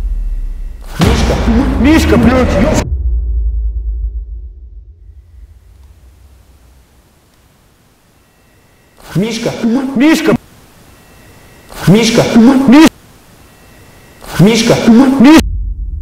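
A man speaks in a low voice close to a microphone.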